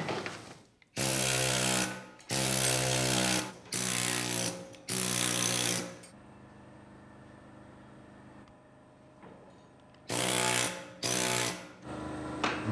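A power drill whirs in short loud bursts into stone.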